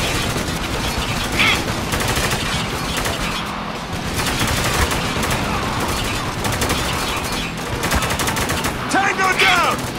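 Rifles fire in rapid bursts.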